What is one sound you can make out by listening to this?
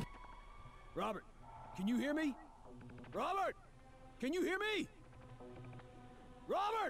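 A young man speaks into a close microphone in short bursts.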